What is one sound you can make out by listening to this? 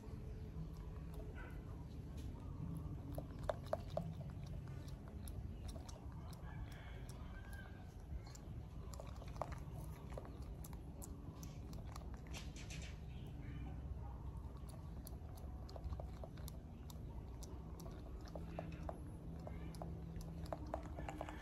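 A monkey's fingers rustle and pick through a man's hair close up.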